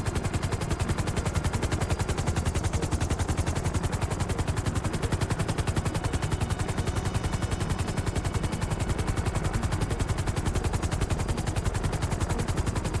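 A helicopter's rotor chops fast and steadily overhead.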